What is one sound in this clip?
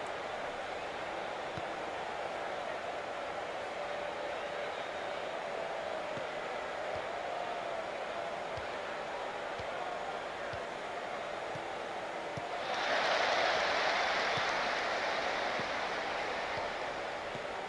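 A large stadium crowd murmurs steadily, then swells into a loud roar.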